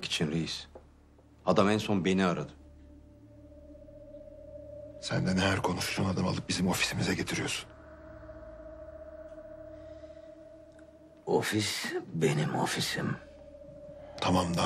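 A middle-aged man speaks tensely, close by.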